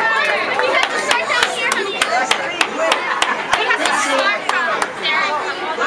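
People clap their hands rhythmically.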